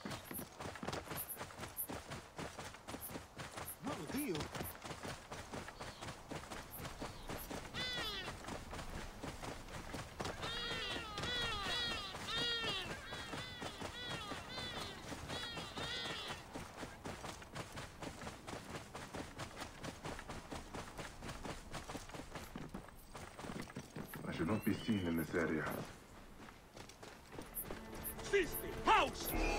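Hooves clop steadily as a horse trots over the ground.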